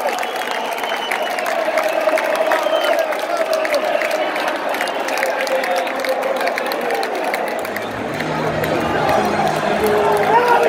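Fans nearby shout and whistle.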